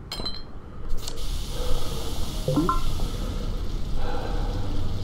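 Steam hisses loudly from a leaking pipe.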